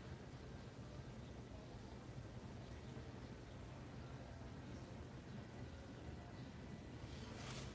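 A paintbrush brushes softly over cloth.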